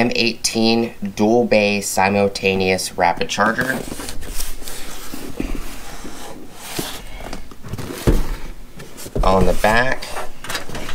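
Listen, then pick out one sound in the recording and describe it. A cardboard box rustles and taps as hands handle it.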